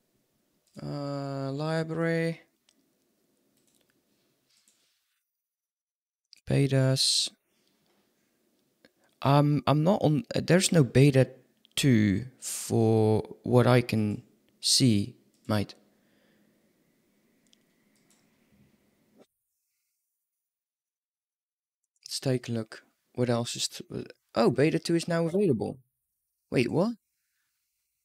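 A young man speaks casually into a close microphone, in bursts with pauses.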